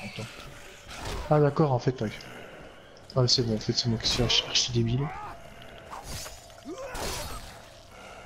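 A blade hacks into flesh with heavy wet thuds.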